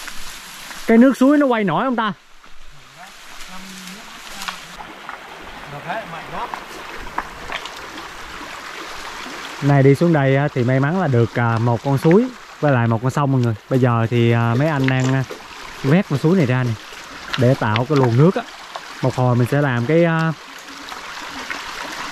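Shallow water ripples over stones.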